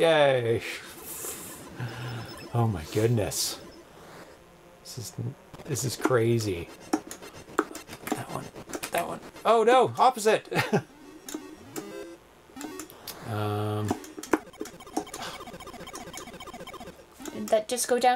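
Retro video game beeps and chirps play.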